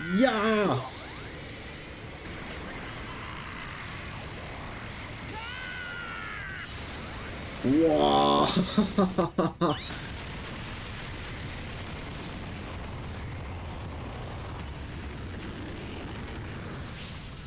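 An energy blast roars and rumbles steadily.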